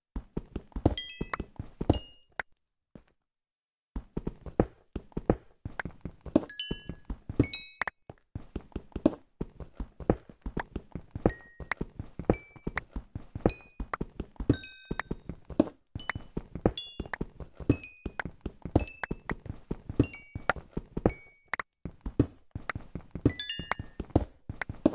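Small items pop as they are picked up.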